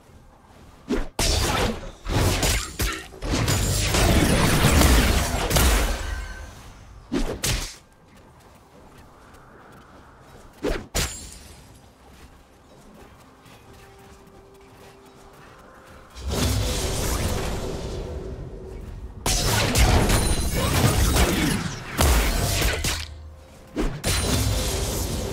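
Game spells and attacks burst and clash loudly in bursts.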